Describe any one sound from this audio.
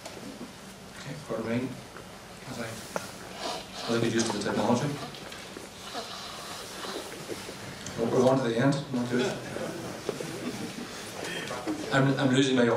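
A man speaks calmly through a microphone and loudspeakers in a large room.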